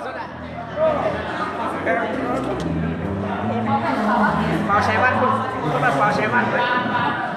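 Music plays over loudspeakers in an echoing hall.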